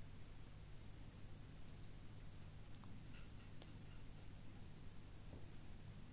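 Plastic toy bricks click as they are pressed together.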